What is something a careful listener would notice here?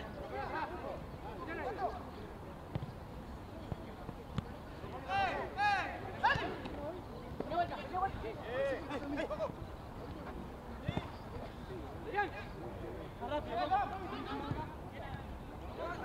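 Young men shout to each other outdoors during a football match.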